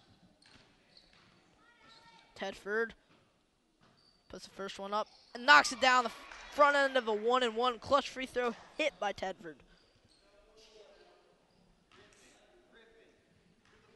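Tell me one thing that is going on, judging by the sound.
A basketball bounces on a wooden gym floor.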